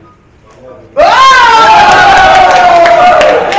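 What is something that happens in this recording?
A group of young people cheer and scream loudly in an echoing room.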